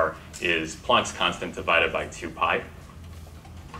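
A young man speaks clearly through a microphone.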